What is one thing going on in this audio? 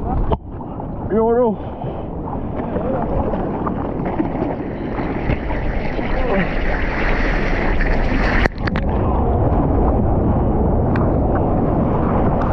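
Water sloshes and laps close by.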